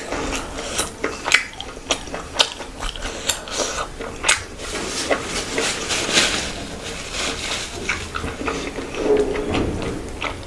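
Fingers squish and mix soft, wet food close to a microphone.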